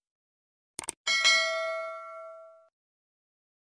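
A bright bell chimes once and rings out.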